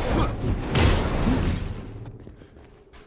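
An electric blast crackles and roars.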